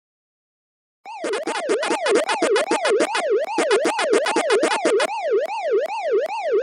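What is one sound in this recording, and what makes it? A video game's electronic siren wails up and down steadily.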